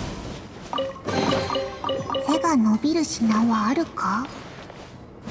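A treasure chest opens with a bright, sparkling chime.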